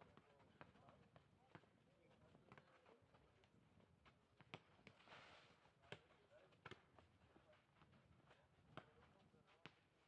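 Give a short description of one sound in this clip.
Tennis balls are struck with rackets, in sharp pops.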